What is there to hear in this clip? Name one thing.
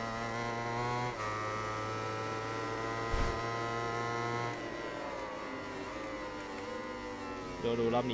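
A racing motorcycle engine screams at high revs, shifting gears and then easing off as it slows.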